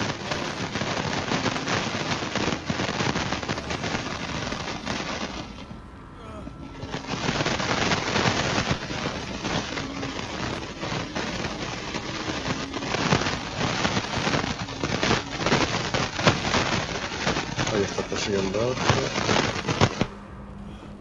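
Footsteps rustle quickly through tall dry grass.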